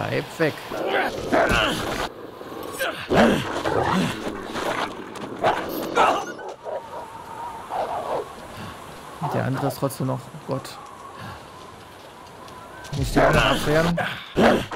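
A wolf snarls and growls fiercely up close.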